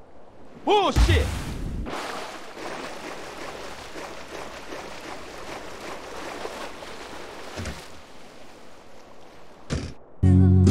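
Water sloshes as someone swims.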